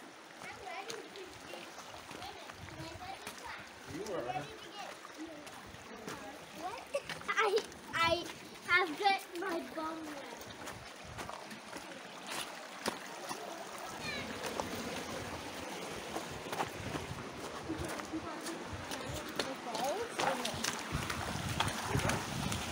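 Shallow water trickles and splashes over stones.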